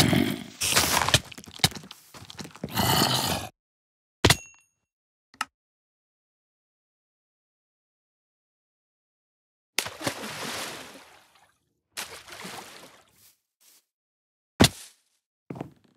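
Blocks crunch as they are broken and placed in quick bursts.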